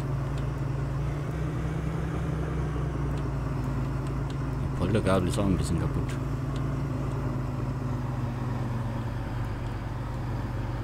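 A diesel farm tractor engine idles.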